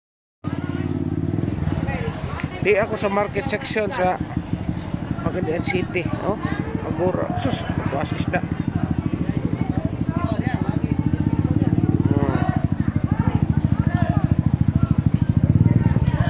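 A small motorcycle engine idles with a steady, rapid chugging close by.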